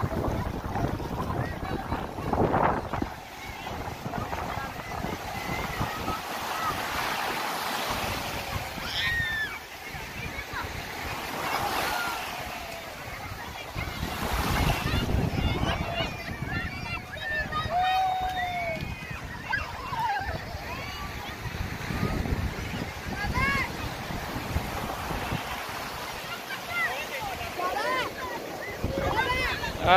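Waves wash and break on the shore.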